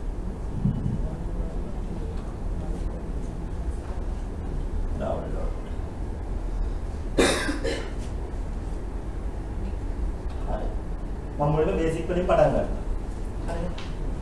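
A man speaks through a microphone in a large echoing hall, pausing often.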